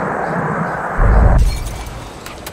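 A glass bowl smashes and shatters.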